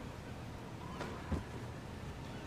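A body drops heavily onto a bed with a soft thud.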